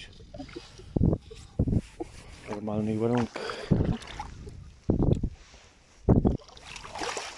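A sand scoop digs into the wet sand with dull thuds.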